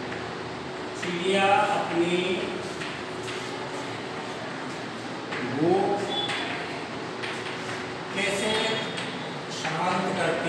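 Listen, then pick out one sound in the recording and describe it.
A man speaks slowly and clearly nearby, as if dictating.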